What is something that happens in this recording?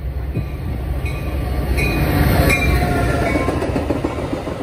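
Train wheels squeal on the track.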